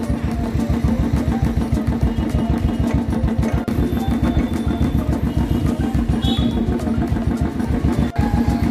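A motorcycle engine chugs steadily up close.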